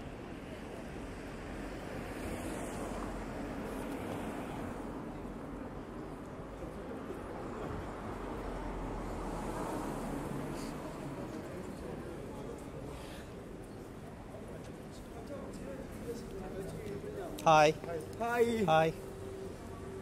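Cars drive past on a city street with a steady traffic rumble.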